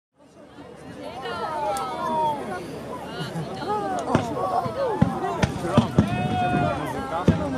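Fireworks whistle as they shoot upward, their pitch gliding.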